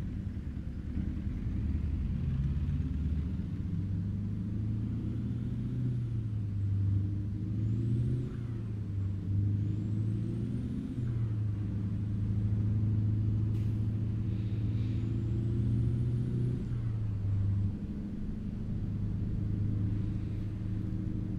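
A truck engine rumbles steadily, its pitch shifting as it changes gear.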